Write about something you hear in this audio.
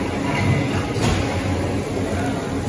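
A plastic bag rustles as meat is pushed into it.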